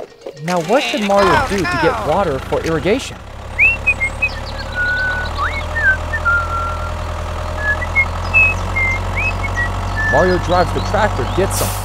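A small toy tractor's electric motor hums steadily.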